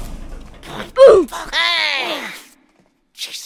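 A man curses loudly in panic.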